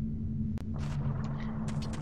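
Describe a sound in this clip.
A fairy's bright twinkling chime rings.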